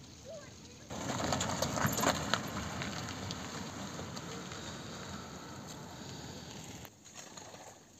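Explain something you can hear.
A van drives slowly past on an icy road.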